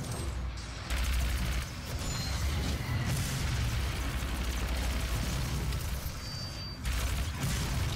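A heavy gun fires rapid blasts.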